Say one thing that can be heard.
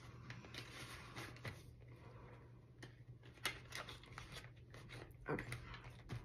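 A binder's metal rings click and snap.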